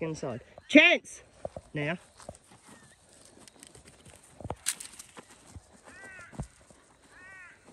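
Paws patter quickly across grass.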